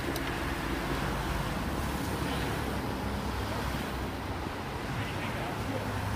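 Car engines hum as vehicles drive past.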